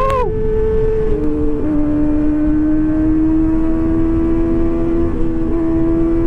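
A motorcycle engine hums steadily, shifting pitch as the rider changes gears.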